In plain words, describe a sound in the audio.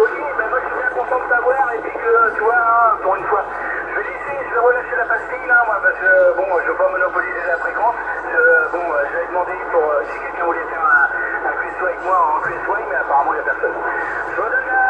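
A radio gives off a low steady hum.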